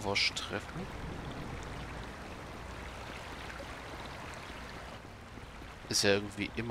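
Water rushes steadily through a channel nearby.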